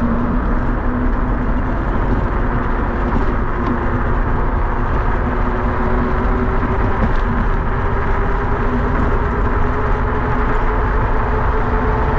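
Small wheels rumble steadily over rough asphalt.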